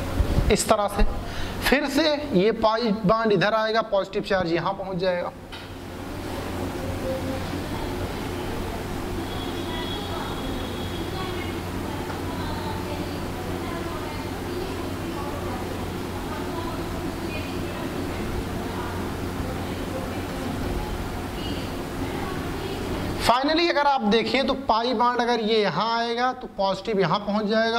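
A man speaks calmly, close to a microphone, as if lecturing.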